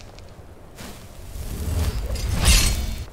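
An ice spell bursts with a loud rushing crackle.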